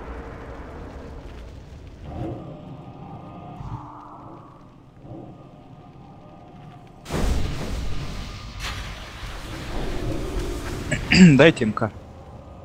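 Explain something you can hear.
Magic spells whoosh and burst in a fight.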